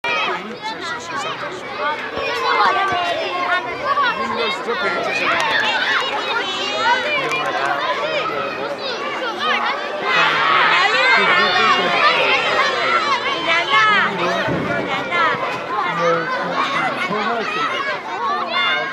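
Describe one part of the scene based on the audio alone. Many children chatter and shout outdoors.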